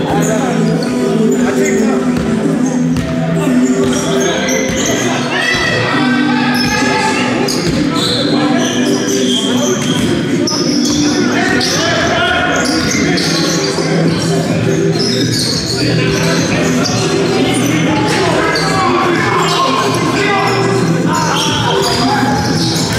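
Sneakers squeak on a hard court floor in a large echoing hall.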